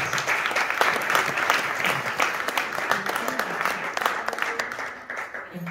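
A woman speaks into a microphone to an audience in an echoing hall.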